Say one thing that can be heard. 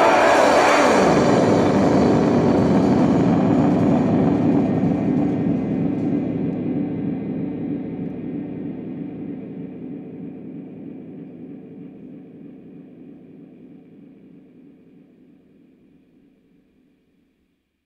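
A droning guitar chord rings out and slowly fades away.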